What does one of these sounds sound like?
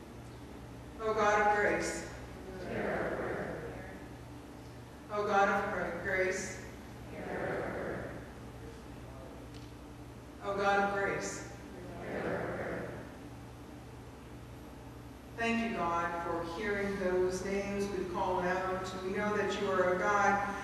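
A middle-aged woman reads aloud in measured phrases through a microphone in an echoing room.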